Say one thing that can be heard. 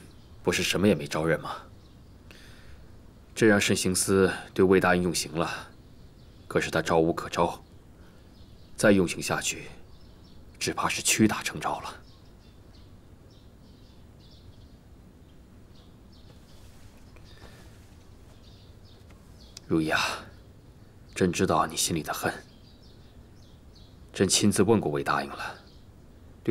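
A man speaks calmly and gravely.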